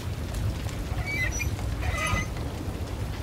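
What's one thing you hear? A metal valve squeaks as it turns.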